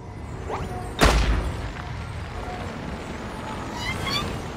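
An electric zap crackles and strikes with a sharp burst.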